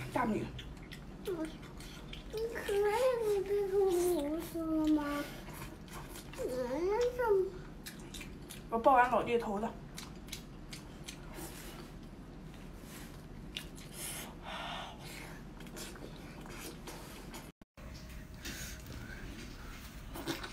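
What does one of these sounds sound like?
A young woman chews and slurps wet food close to the microphone.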